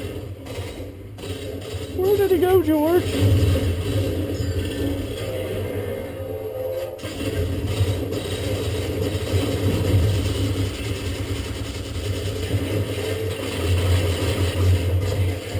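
Video game sounds play from nearby speakers, with rumbling and effects.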